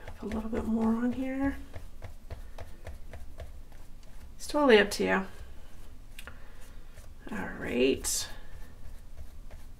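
A brush dabs glue onto paper.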